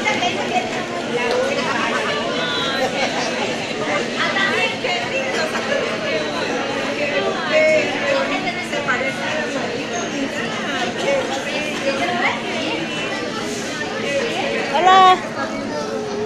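Plastic wrapping crinkles and rustles as a gift is unwrapped.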